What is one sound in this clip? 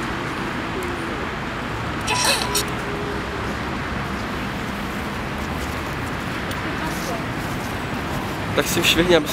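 Traffic rumbles steadily in the distance.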